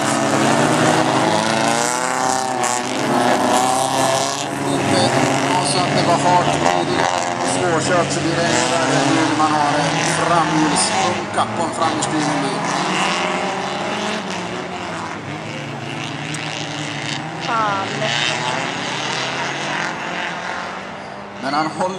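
Car engines roar and rev.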